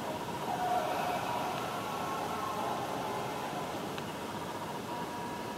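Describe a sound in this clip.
Game sounds play steadily through a television speaker.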